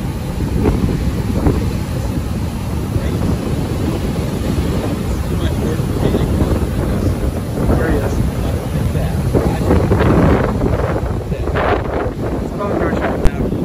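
Waves crash and roll onto the shore.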